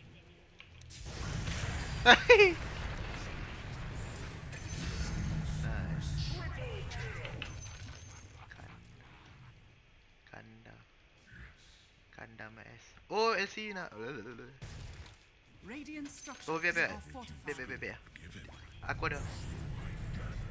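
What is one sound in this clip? Magic spells whoosh and crackle during a video game battle.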